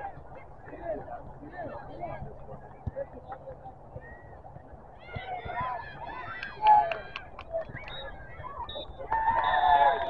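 Young players shout to each other across an open field, heard from a distance.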